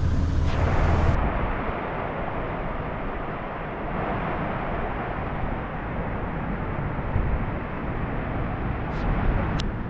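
A muddy stream rushes and gurgles nearby.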